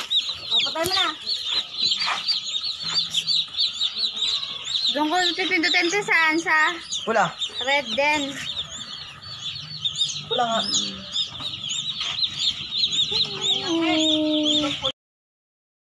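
Many young chicks peep rapidly and shrilly.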